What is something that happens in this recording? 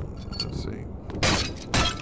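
Wooden boards splinter and crack as a crate is smashed.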